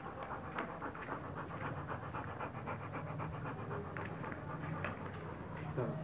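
A dog pants rapidly close by.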